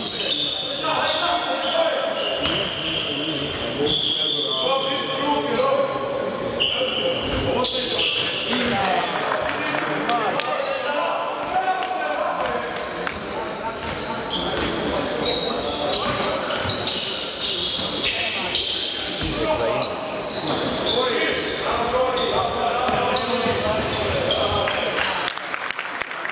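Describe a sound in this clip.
Young men shout to each other from across the court.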